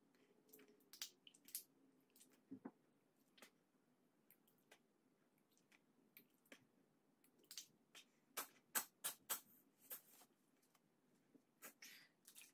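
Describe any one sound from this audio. Water trickles and splashes into a sink.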